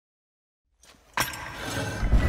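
A heavy metal mechanism clanks and turns.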